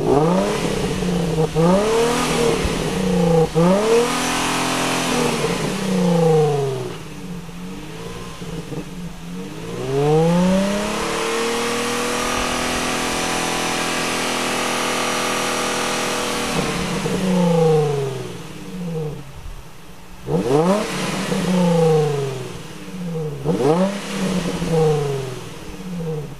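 Tyres screech as they spin on the road.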